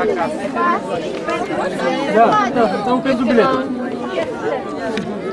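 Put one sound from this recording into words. A crowd of children chatters and talks all around, close by.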